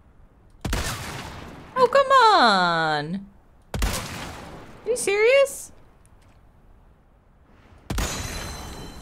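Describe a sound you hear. A rifle fires loud shots that echo.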